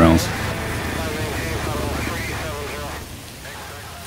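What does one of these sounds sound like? A man speaks calmly over an aircraft radio.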